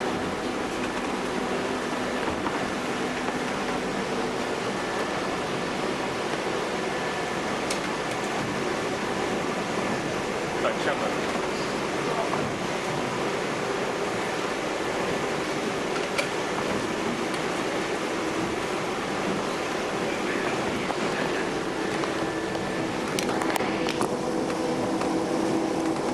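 A ship's engine drones steadily, with a loud roaring rush of noise all around.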